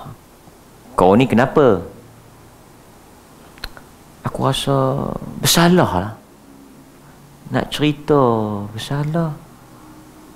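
A man speaks with animation into a close microphone, in short bursts with pauses.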